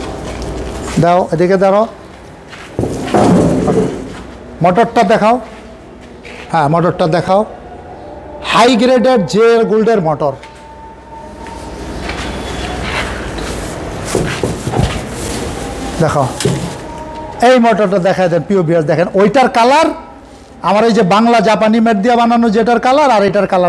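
A man talks close by with animation, in short bursts.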